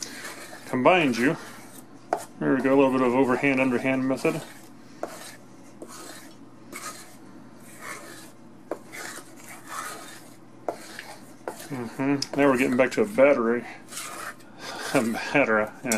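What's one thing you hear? A hand squishes and kneads thick, sticky batter in a metal pot.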